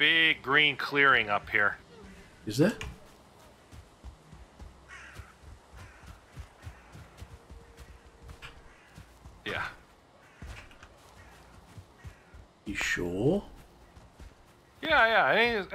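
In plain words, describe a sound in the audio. Footsteps rustle softly through undergrowth.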